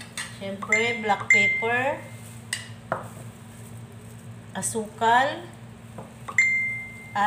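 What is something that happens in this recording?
Ceramic bowls clink against each other.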